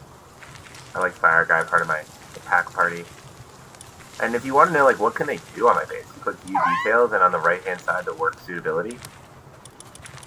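A man talks calmly and close to a microphone.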